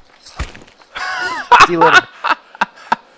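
A young man laughs heartily close to a microphone.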